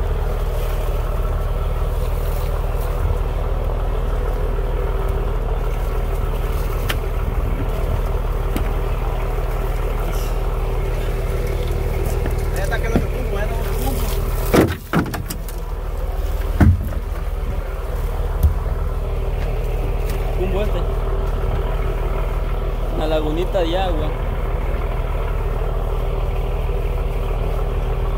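Water splashes against a boat's hull.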